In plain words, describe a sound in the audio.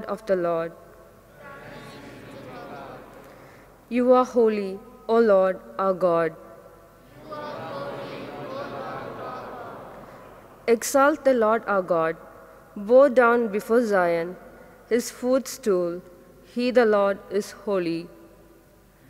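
A young woman reads aloud into a microphone in a slow, chanting voice.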